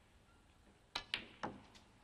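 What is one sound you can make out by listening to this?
A snooker cue strikes the cue ball.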